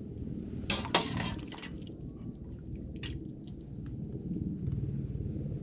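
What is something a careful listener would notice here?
A metal spoon clinks against a metal pot and bowls.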